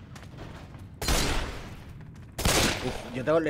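Pistol shots bang loudly twice, with a short echo after each.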